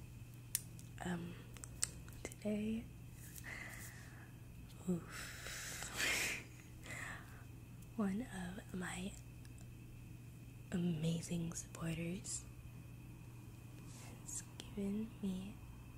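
A young woman talks softly and close to a microphone.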